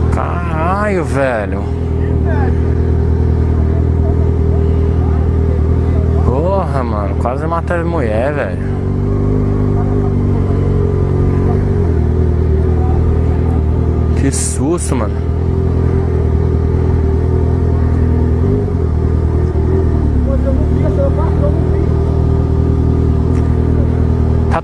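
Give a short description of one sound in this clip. A motorcycle engine idles close by with a steady low rumble.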